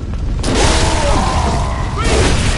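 A bonfire crackles and roars.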